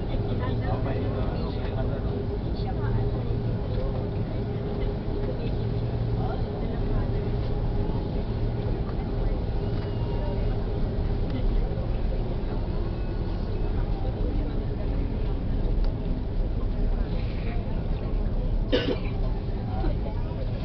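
Jet engines roar steadily as an airliner taxis.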